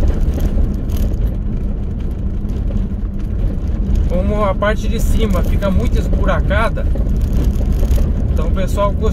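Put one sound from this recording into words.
Tyres roll and rumble over a bumpy dirt road.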